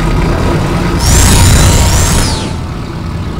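A mounted gun fires a rapid burst.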